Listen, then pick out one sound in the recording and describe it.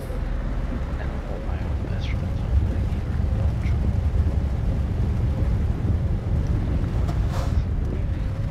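Truck tyres crunch and rumble on gravel.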